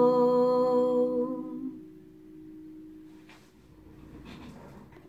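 An acoustic guitar rings out and slowly fades.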